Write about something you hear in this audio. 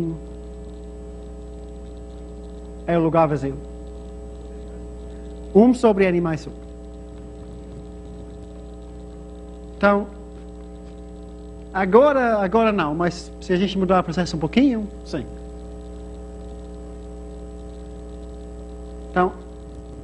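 A man lectures calmly in short phrases with pauses, heard from a short distance.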